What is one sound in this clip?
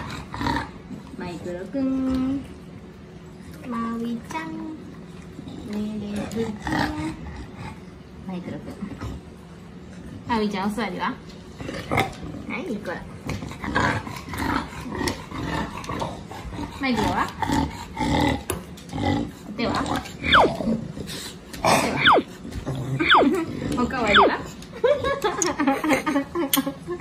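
English bulldogs whine.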